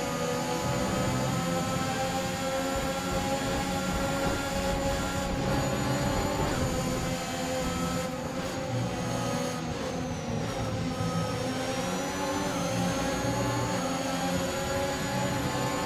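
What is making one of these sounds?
A racing car engine whines loudly at high speed.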